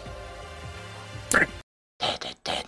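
Game music plays.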